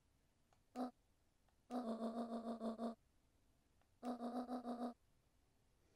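Quick pitched blips chatter in short bursts, like a game's dialogue sound.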